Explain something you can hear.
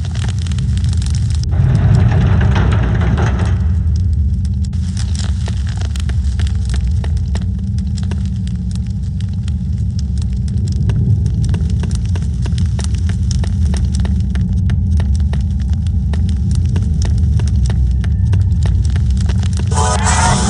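Footsteps tap steadily on a stone floor in an echoing hall.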